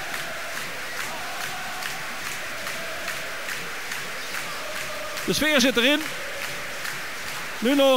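A crowd of fans claps their hands.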